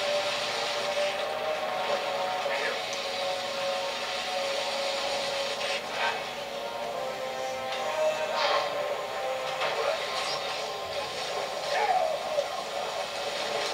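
Water sprays in short hissing bursts.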